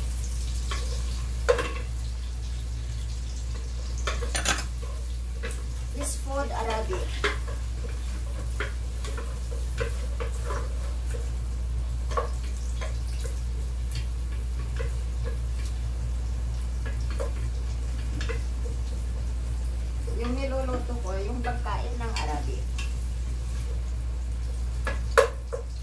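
A wooden spoon stirs and scrapes in a metal pot.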